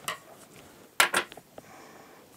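Metal scissors clunk down onto a table.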